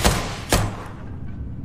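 Two loud gunshots go off close by in quick succession.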